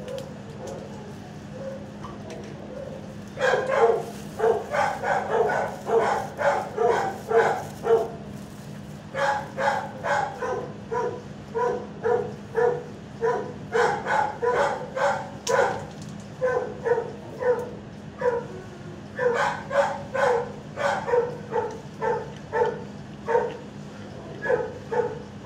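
A dog's claws tap on a hard floor as it walks about.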